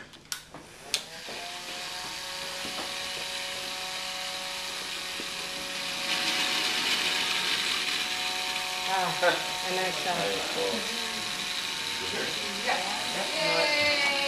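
Small electric motors whir steadily.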